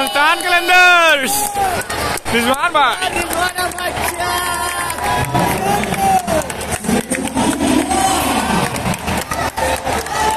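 A large stadium crowd cheers and shouts loudly outdoors.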